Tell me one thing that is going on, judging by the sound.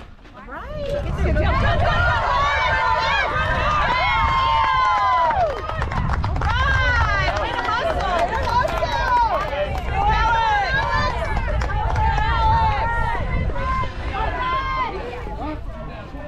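Young women cheer and chant loudly nearby.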